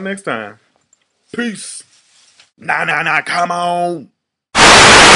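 A man speaks loudly and with animation, close to the microphone.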